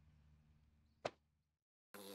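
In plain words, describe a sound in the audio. A small creature thumps onto a wooden floor.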